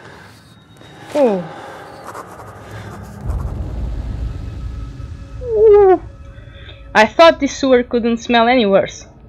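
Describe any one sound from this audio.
A young woman talks into a close microphone, reacting with animation.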